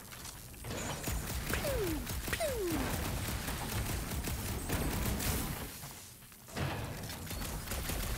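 Rapid gunfire crackles from a video game.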